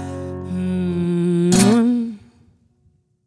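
A young woman sings a long held note into a microphone.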